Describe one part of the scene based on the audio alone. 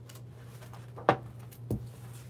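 A book thumps shut.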